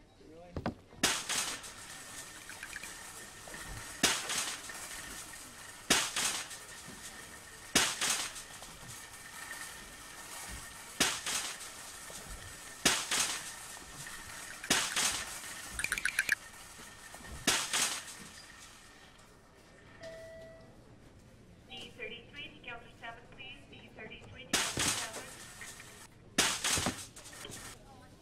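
A wire cart clatters and rattles along a track in loud bursts.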